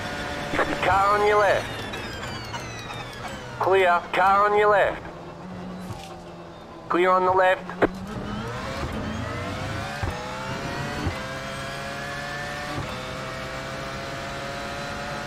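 A racing car engine roars and whines, rising in pitch as the car speeds up.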